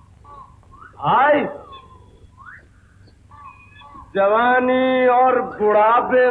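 A young woman sings in a high, sustained voice.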